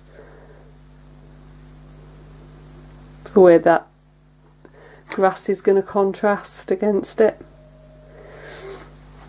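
A paintbrush softly dabs and strokes on paper.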